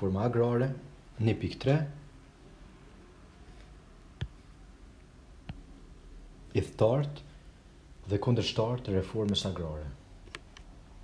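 A young man speaks calmly and close to a microphone, in short phrases with pauses.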